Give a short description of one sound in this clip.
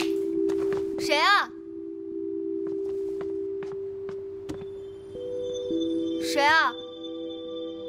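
A young woman shouts loudly.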